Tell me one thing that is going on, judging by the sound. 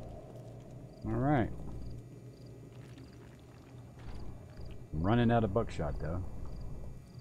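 A young man speaks briefly into a close microphone in short bursts.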